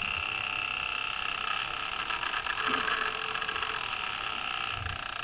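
A tiny motor whirs with a steady high whine.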